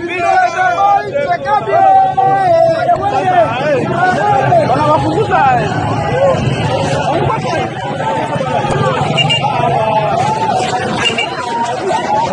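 A crowd of men shouts and yells excitedly close by.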